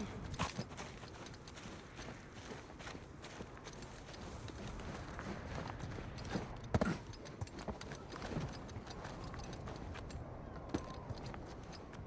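Footsteps crunch through dry grass and over rocky ground.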